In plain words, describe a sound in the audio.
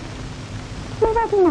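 A woman speaks in a high voice.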